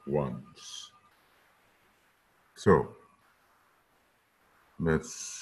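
An elderly man speaks calmly and slowly through a microphone, in short bursts with pauses.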